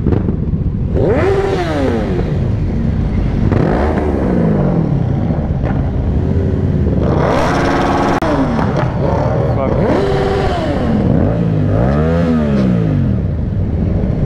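Motorcycle engines rev up and down repeatedly.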